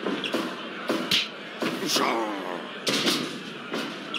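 A body slams down hard onto a wrestling ring mat.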